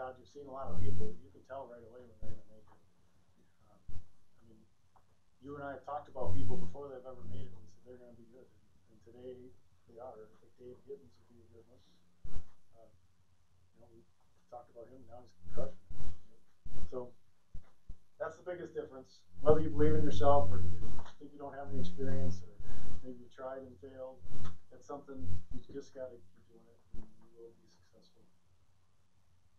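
A man lectures calmly in a room with a slight echo.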